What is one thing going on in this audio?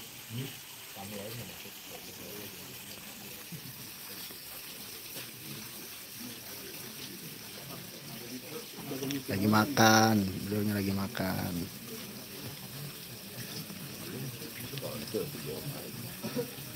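A crowd of men murmurs and talks quietly outdoors.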